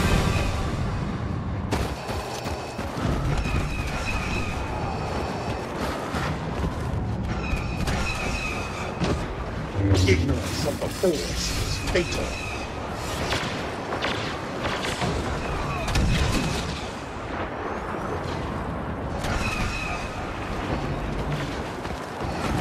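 Heavy footsteps crunch steadily over rocky ground.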